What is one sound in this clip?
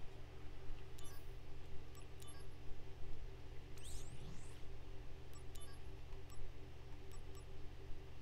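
Soft electronic menu clicks and chimes sound now and then.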